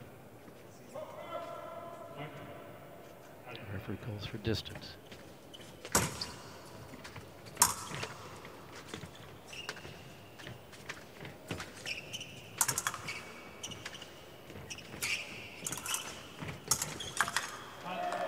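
Sports shoes squeak and thud as two fencers move back and forth.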